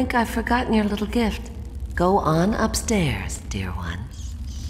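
An elderly woman speaks slyly and clearly, close by.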